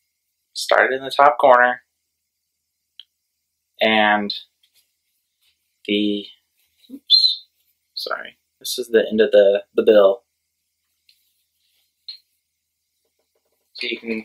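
A young man talks casually close by, in short bursts.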